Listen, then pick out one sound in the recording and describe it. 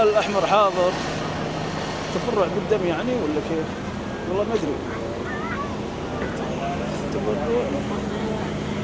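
A crowd of men and women talks and calls out nearby outdoors.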